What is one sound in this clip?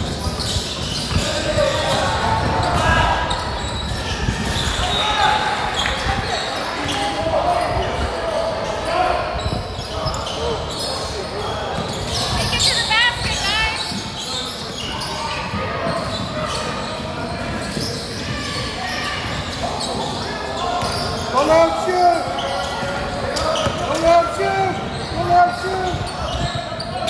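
Young men call out to each other during play.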